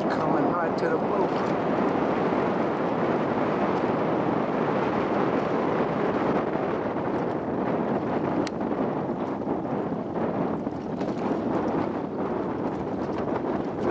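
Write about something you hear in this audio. Choppy water laps and splashes steadily.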